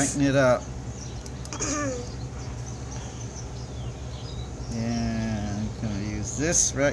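Small plastic parts click softly as fingers work a wire connector.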